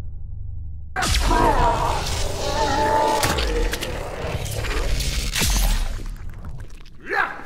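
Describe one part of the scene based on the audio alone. Electricity crackles and sizzles loudly.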